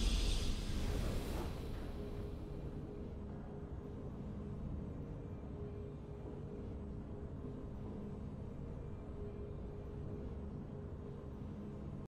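A triumphant game fanfare swells and fades into a low, steady drone.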